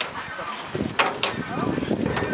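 A metal bin clanks as a bear leans on its rim.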